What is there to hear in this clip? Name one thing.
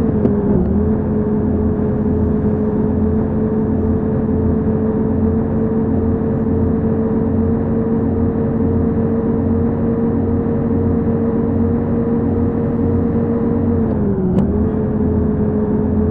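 A bus engine hums steadily at speed, dipping briefly near the end.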